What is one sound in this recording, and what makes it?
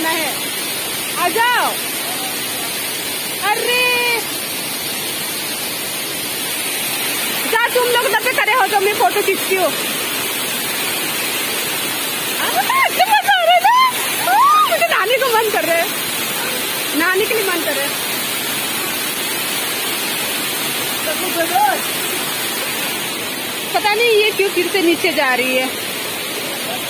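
A waterfall rushes and splashes steadily close by.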